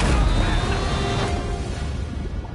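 A body splashes heavily into rough water.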